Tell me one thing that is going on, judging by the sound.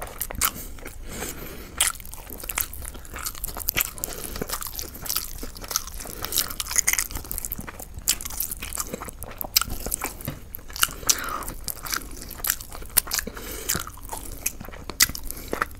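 Meat tears apart in a man's hands with wet squelching sounds.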